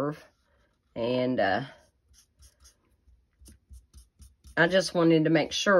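A felt marker scratches softly across paper.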